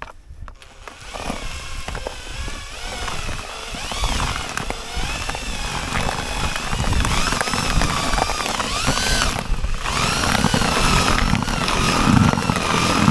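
An electric drill whirs, its speed rising and falling as it stirs.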